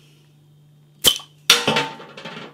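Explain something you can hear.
A bottle cap pops off with a sharp snap.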